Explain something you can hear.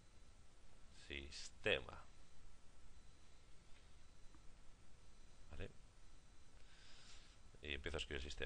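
A young man speaks calmly in short phrases, close to a microphone.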